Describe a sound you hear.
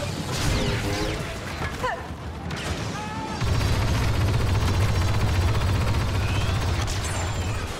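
Laser bolts whine and zip past.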